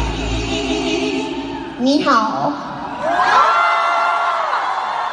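A woman sings loudly through loudspeakers in a large echoing hall.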